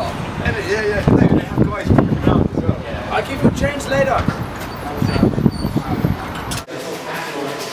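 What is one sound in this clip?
Young men chat and laugh nearby outdoors.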